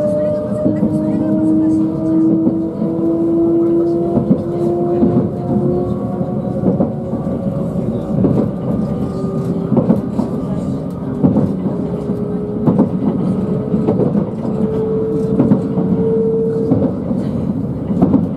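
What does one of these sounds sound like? A train's motor whines with a slowly rising and falling hum.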